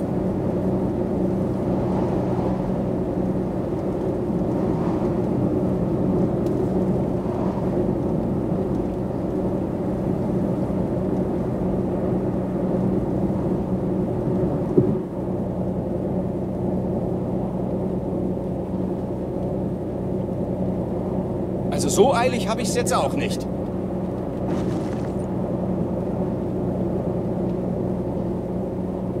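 Tyres roll on the road surface.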